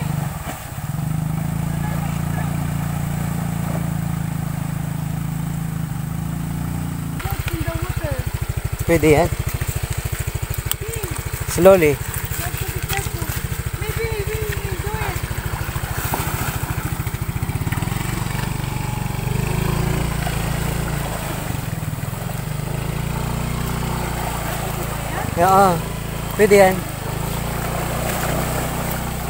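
A motor scooter engine idles and putters close by.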